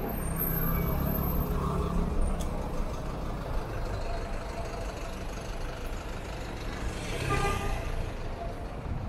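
A motor scooter engine hums as it passes.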